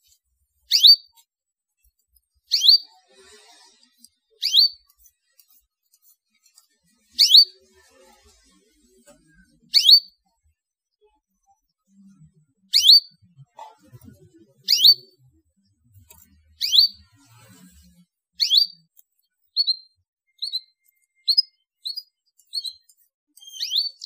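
A canary chirps in short, sharp calls, faster toward the end.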